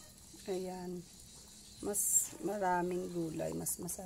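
Leafy greens drop into a pot of water.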